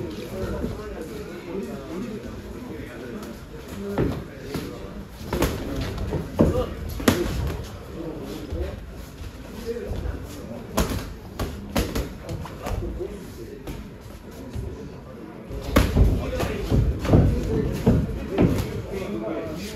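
Sneakers squeak and shuffle on a padded ring floor.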